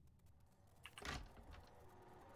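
A wooden door bangs shut.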